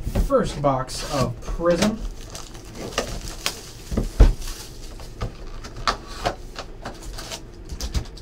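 Plastic wrap crinkles and tears as hands unwrap a box.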